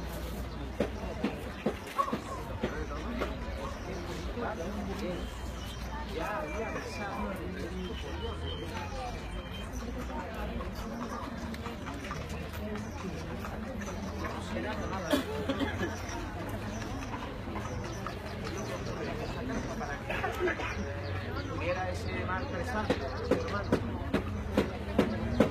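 A crowd of men and women talks and shouts at once, close by, outdoors.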